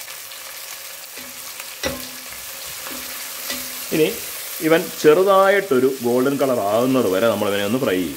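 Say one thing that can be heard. A wooden spatula stirs onions in a metal pot.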